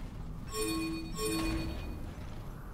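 Two bright chimes ring out in quick succession.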